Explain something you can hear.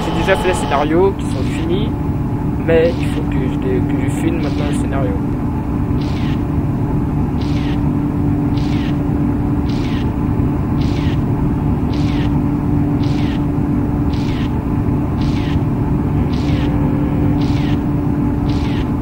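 Windscreen wipers swish back and forth at an even pace.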